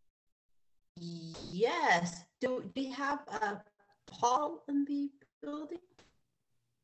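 A woman speaks with feeling over an online call.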